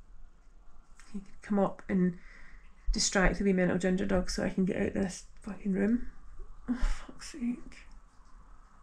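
A woman speaks quietly and hesitantly close by.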